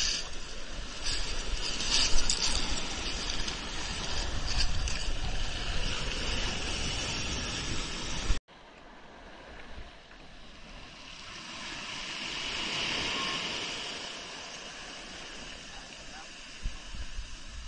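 Waves wash and foam over a pebble beach.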